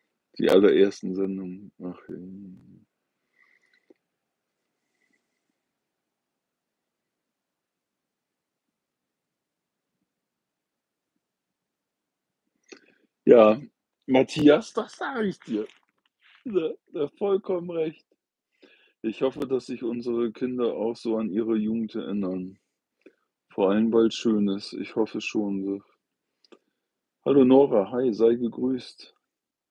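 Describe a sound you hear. An older man talks calmly and closely to the microphone, with pauses.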